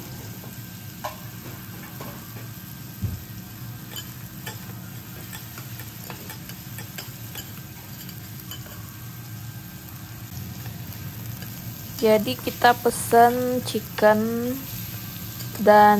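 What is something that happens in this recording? Metal spatulas scrape and clack on a steel griddle.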